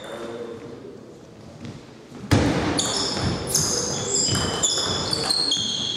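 A ping-pong ball clicks back and forth off paddles and a table in a large echoing hall.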